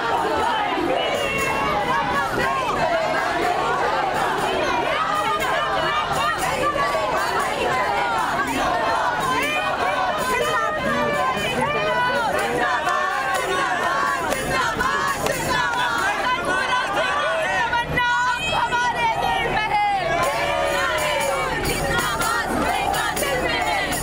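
A large crowd of men and women chants slogans loudly outdoors.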